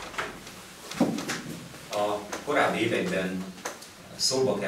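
A middle-aged man speaks calmly to a gathering in a room with a slight echo.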